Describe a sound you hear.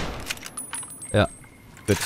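A shotgun is loaded with a metallic click.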